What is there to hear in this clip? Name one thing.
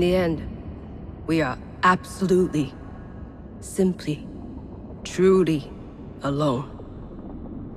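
A woman speaks slowly and weakly, close by.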